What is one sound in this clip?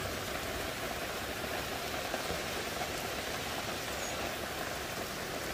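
Steady rain patters on leaves and trees outdoors.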